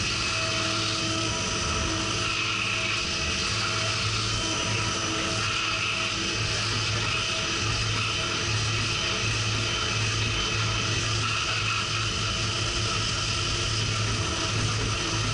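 Coolant sprays and splashes steadily.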